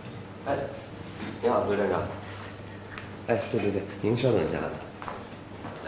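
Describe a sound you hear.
A young man talks briskly on a phone.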